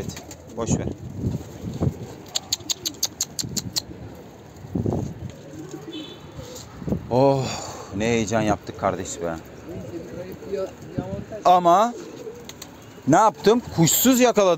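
Pigeons coo nearby.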